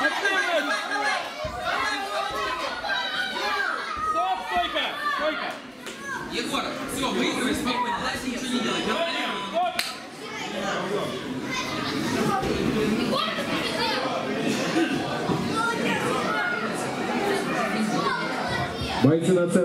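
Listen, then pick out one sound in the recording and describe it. A crowd of adults and children chatters and shouts in a large room.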